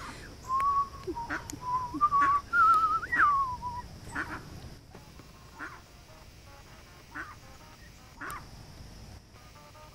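Ducks quack softly nearby.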